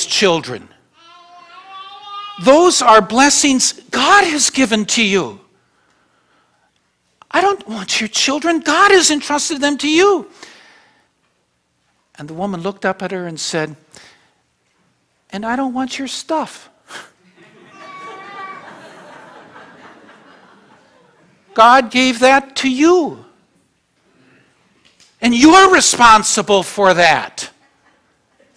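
An elderly man speaks with animation through a microphone, pausing between phrases.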